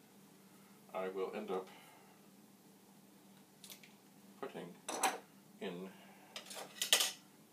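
An elderly man speaks calmly and close by, in short bursts.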